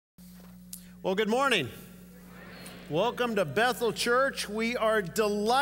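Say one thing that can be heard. A man speaks calmly through a microphone in a large echoing hall.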